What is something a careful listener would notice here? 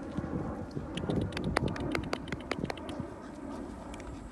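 A puppy's claws tap and patter on pavement.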